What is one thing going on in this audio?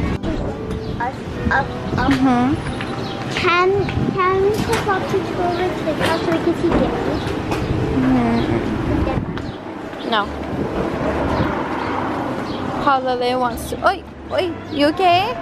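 A toddler babbles and squeals nearby.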